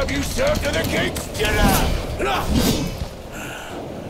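A gruff man's voice growls and speaks with menace.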